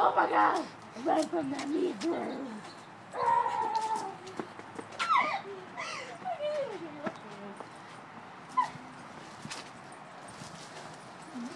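Footsteps scuff on a pavement.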